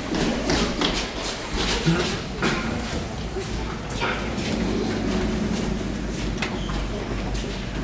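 Young actors speak loudly on a stage in a large hall.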